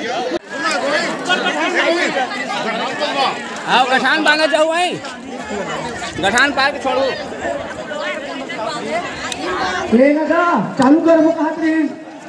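A crowd of women and children chatter and call out nearby.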